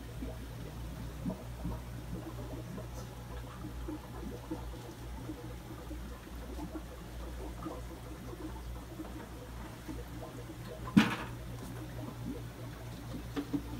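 Air bubbles gurgle softly in an aquarium.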